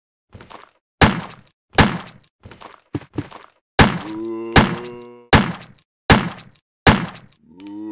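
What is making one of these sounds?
A handgun fires sharp, echoing shots.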